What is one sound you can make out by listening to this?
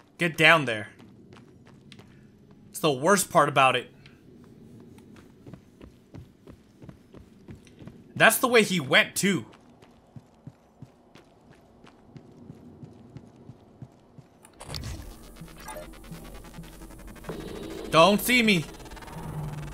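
A man speaks into a microphone in short, lively bursts.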